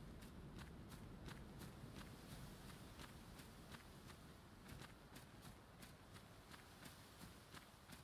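Quick footsteps run over grass.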